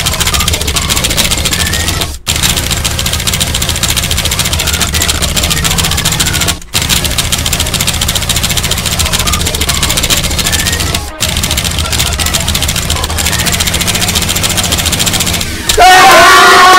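Fast electronic music plays loudly.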